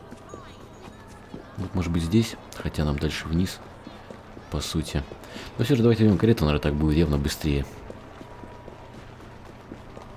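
Footsteps run over cobblestones.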